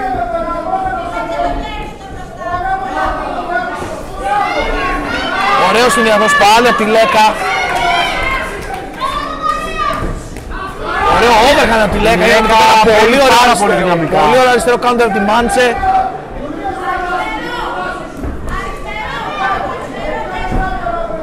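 A crowd shouts and cheers in an echoing arena, swelling at times.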